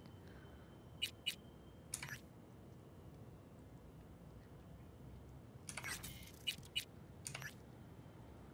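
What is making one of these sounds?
Short electronic interface clicks and beeps sound as a menu is browsed.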